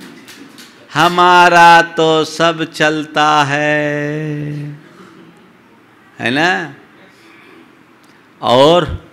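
An elderly man speaks calmly and melodiously into a microphone, close by.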